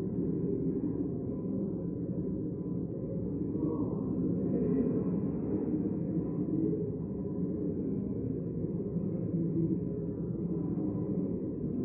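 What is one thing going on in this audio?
Many men and women murmur and chat at once in a large echoing hall.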